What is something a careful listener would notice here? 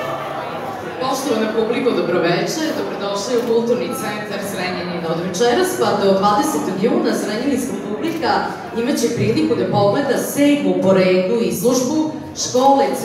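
A girl speaks into a microphone, heard through loudspeakers in an echoing hall.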